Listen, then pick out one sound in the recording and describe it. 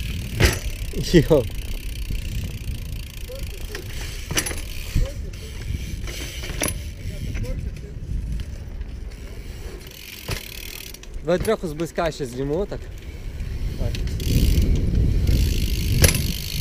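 A bicycle clatters and clicks sharply now and then.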